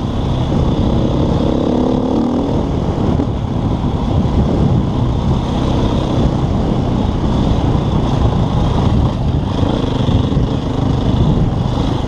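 A dirt bike engine hums and revs close by.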